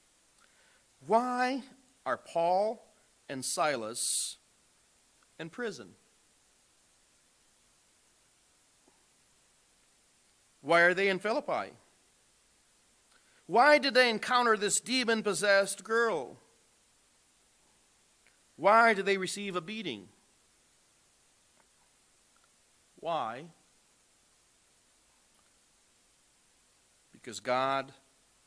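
A man speaks into a microphone in measured phrases with long pauses.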